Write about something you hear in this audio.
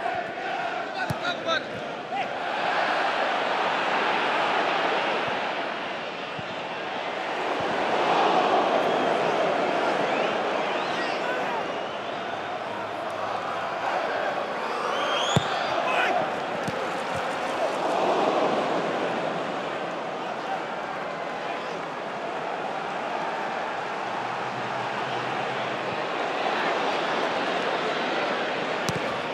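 A large stadium crowd roars and chants, swelling and fading.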